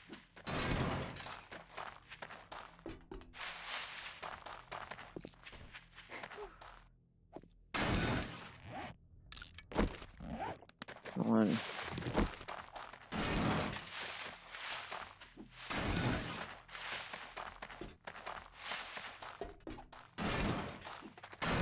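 Footsteps crunch over dry ground and debris.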